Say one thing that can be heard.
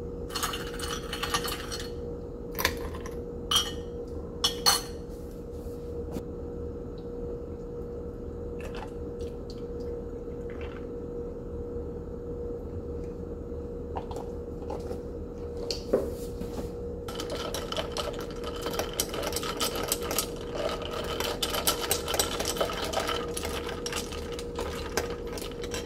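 A metal spoon stirs ice, clinking against a glass jar.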